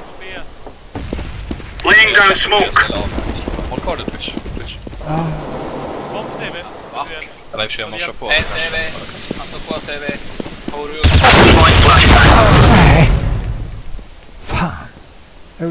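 A young man talks with animation into a close microphone, at times shouting loudly.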